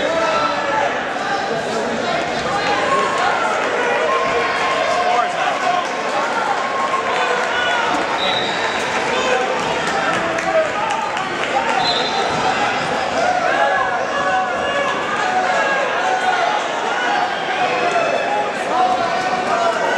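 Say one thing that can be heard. A crowd of people chatters and calls out throughout a large echoing hall.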